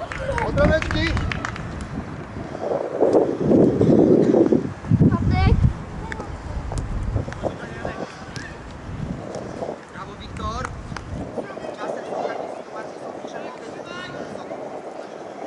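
Children shout and call out across an open sports field.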